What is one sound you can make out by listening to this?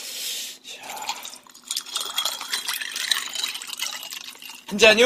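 Liquid pours from a carton into a glass.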